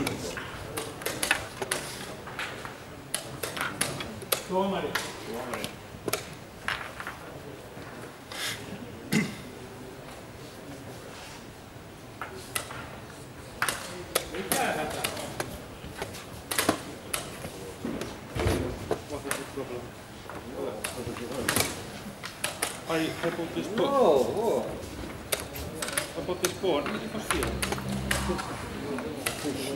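Chess pieces tap on wooden boards in a large echoing hall.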